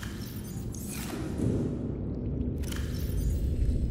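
A metal locker door swings open with a soft whoosh.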